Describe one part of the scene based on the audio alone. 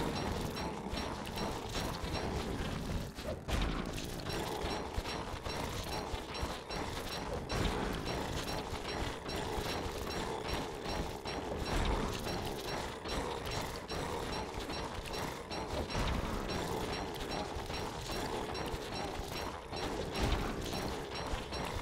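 Weapon blows strike a monster again and again.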